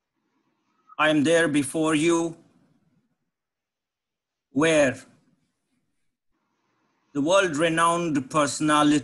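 An older man speaks calmly into a microphone, in short phrases with pauses.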